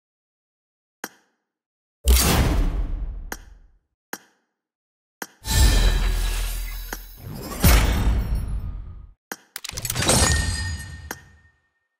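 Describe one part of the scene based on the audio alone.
Short sharp game menu clicks sound several times.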